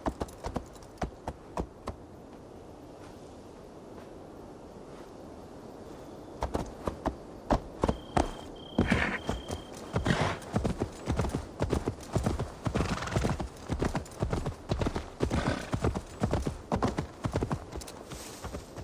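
Horse hooves clop and thud on rough ground.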